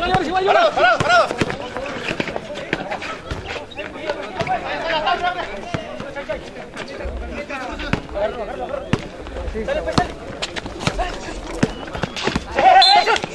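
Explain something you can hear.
A basketball bounces on a concrete court.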